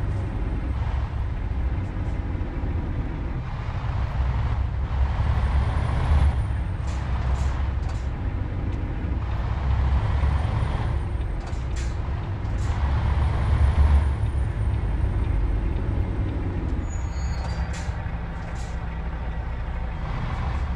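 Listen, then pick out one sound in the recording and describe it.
A heavy truck engine rumbles low and steadily.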